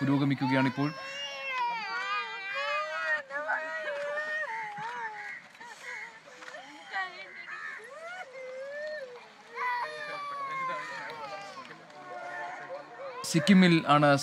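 A woman wails and sobs loudly nearby.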